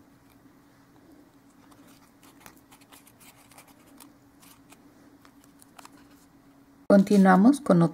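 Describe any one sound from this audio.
Stiff paper rustles and crinkles softly as it is folded by hand.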